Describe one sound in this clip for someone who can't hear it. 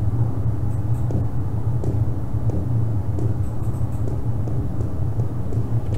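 Footsteps tap softly on hard pavement.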